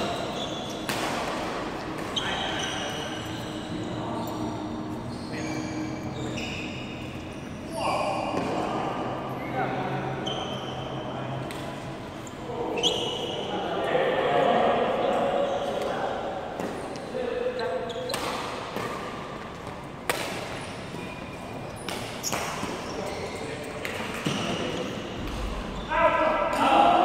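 Shoes squeak sharply on a hall floor.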